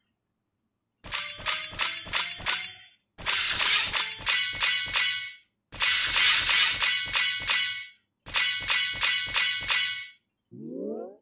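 Bright chiming tones ring out in quick succession as a game's combo builds.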